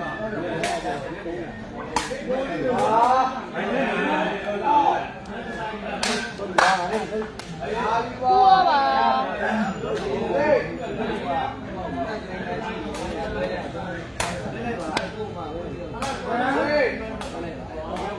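A sepak takraw ball is kicked with sharp thuds.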